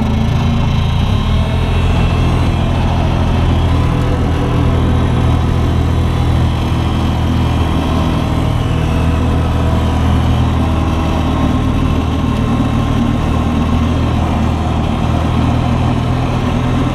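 A skid steer loader's diesel engine rumbles steadily close by.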